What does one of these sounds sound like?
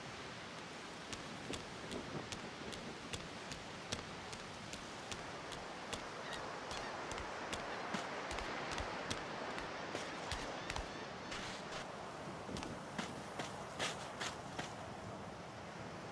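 Sea waves wash gently against the shore.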